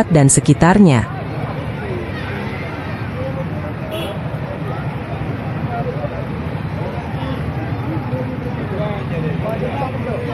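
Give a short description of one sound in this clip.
A crowd murmurs softly outdoors.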